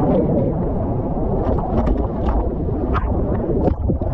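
A wave breaks and crashes with a rush of foam.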